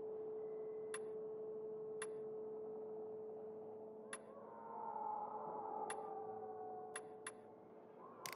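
Short, sharp menu clicks tick now and then.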